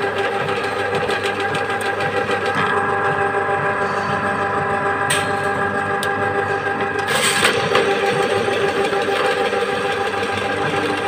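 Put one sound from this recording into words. A drain cleaning cable whirs and rattles as it spins inside a pipe.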